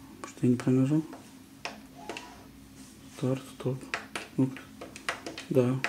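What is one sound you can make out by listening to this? Buttons on a machine click as they are pressed.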